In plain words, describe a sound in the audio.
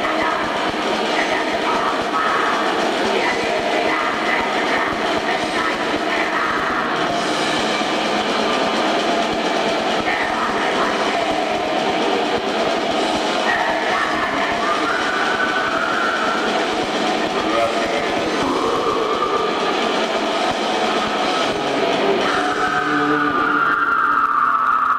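A loud rock band plays through amplifiers in an echoing hall.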